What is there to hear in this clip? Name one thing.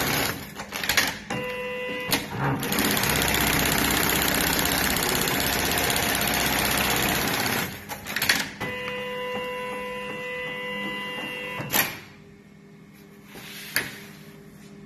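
An industrial sewing machine's clamp frame clunks.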